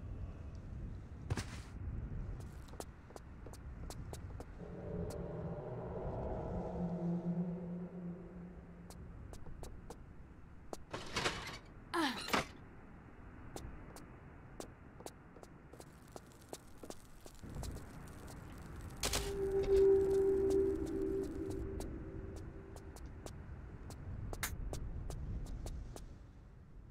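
Quick footsteps patter across a wooden floor.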